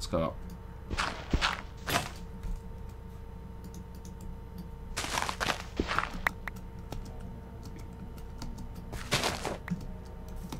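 Dirt crunches in short bursts as it is dug away.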